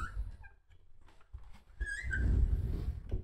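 A kitten meows in short, high cries.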